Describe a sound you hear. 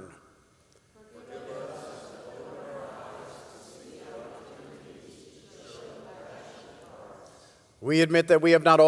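A congregation recites together in a murmur, heard from a distance.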